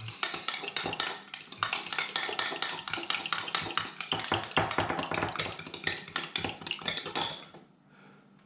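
A spoon clinks and scrapes rapidly inside a glass.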